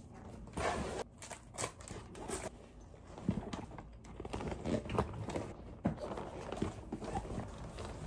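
Plastic packaging and small items rustle and clatter as they are handled.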